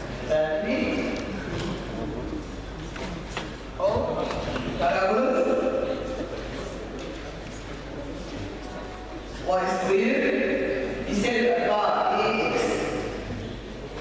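A man speaks calmly into a microphone, heard close up.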